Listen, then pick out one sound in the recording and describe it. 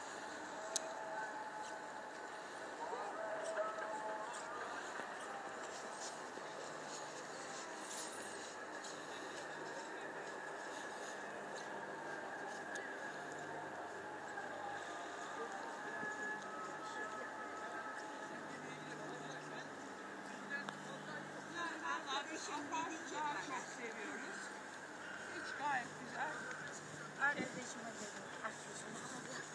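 Small waves lap gently against a seawall.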